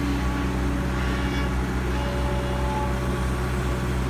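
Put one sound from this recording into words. An excavator bucket scrapes and scoops through wet soil.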